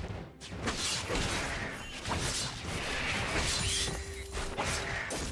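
Magic blasts and sword strikes crackle and whoosh in a fast video game battle.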